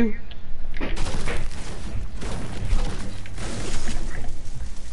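A pickaxe chops into wood with repeated thuds.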